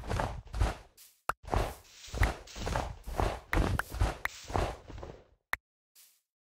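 Blocks crack and crumble in quick, repeated crunches.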